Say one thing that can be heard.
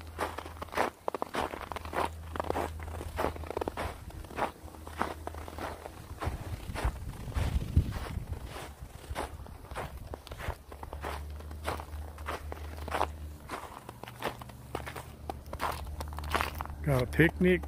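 Footsteps crunch on thin snow.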